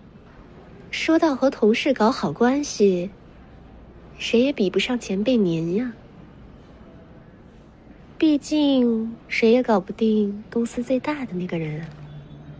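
A young woman speaks with animation close by.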